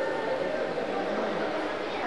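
A group of children chatters in an echoing hall.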